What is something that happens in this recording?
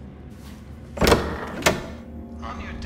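A wooden door creaks and opens.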